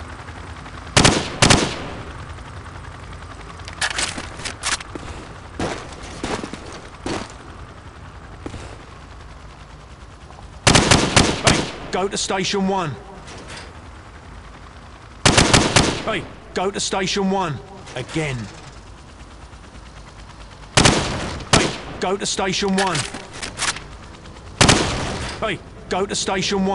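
Gunshots fire in quick bursts, echoing in a large hall.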